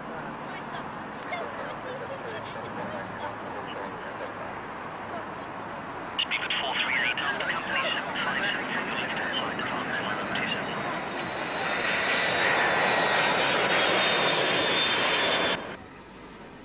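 A three-engined jet airliner roars low overhead as it comes in to land.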